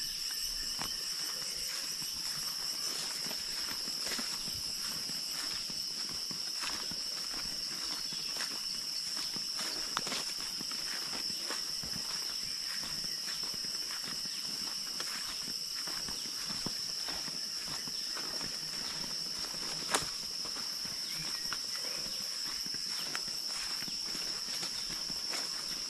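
Footsteps crunch on a leafy path.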